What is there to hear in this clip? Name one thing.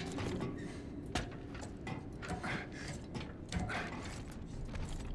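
Heavy armored hands and boots clank on metal ladder rungs.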